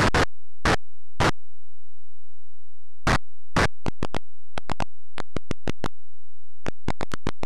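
Short harsh bursts of retro video game noise sound with each step, coming faster and faster.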